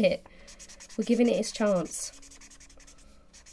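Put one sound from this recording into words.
A felt marker scratches softly across paper.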